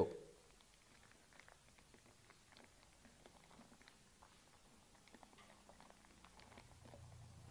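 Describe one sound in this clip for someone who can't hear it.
A plastic sleeve crinkles faintly as hands fold it.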